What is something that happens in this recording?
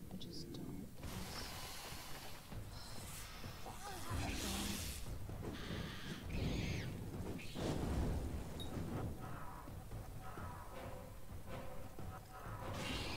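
Combat sounds clash and thud.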